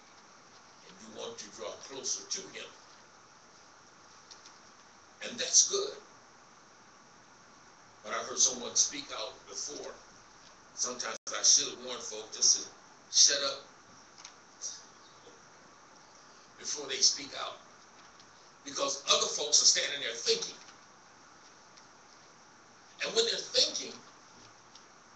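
A man preaches with emphasis in bursts through a microphone and loudspeakers in an echoing hall.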